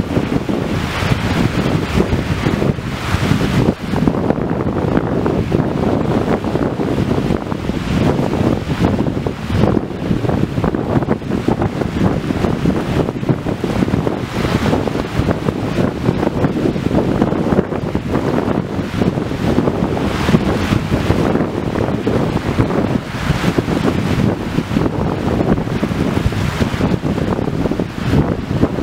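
Small waves wash onto a beach.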